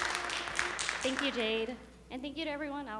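A young woman speaks brightly into a microphone.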